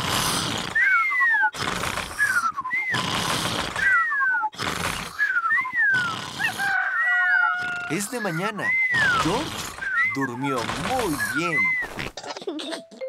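A small child snores loudly, with a whistle on each breath.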